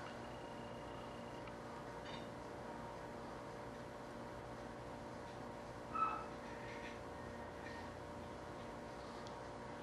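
A hand presses and rubs a wooden strip against a smooth hard surface.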